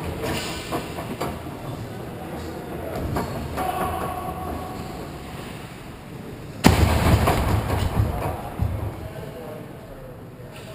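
Ice skates scrape and swish on ice in a large echoing rink.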